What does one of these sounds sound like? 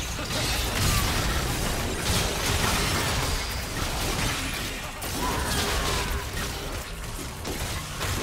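Game spell effects whoosh and crackle during a fight.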